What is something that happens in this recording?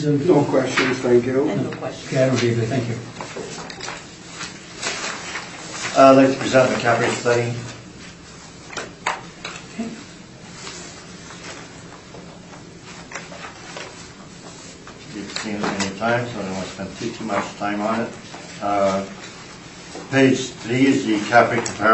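A man and a woman talk calmly, heard through a distant microphone.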